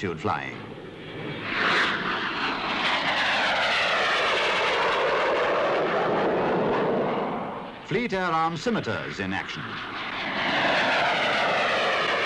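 Jet engines roar loudly overhead, rising and falling in pitch as the jets sweep past.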